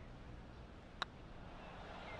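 A putter taps a golf ball once.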